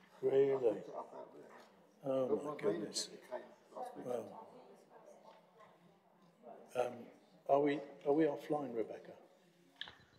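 An elderly man speaks calmly through a microphone in a slightly echoing room.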